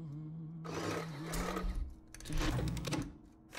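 A lever slides with a mechanical clatter.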